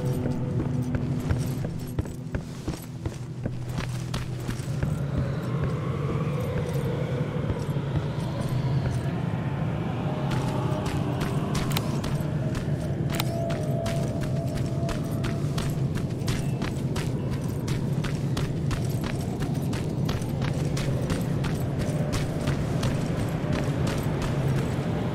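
Footsteps crunch over rubble and gravel.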